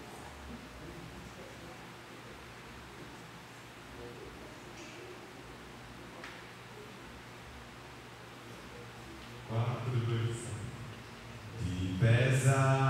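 A man speaks into a microphone over a loudspeaker, quietly at first and then louder with animation, in an echoing room.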